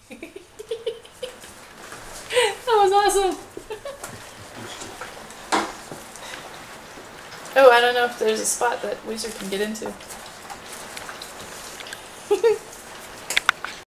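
Puppies lap and munch food noisily.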